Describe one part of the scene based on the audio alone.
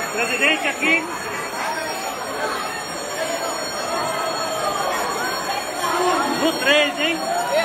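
A large crowd cheers and chants loudly in a big echoing hall.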